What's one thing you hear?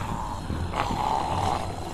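A zombie snarls and groans close by.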